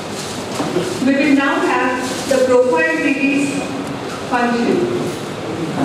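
A woman speaks calmly through a microphone and loudspeaker in an echoing hall.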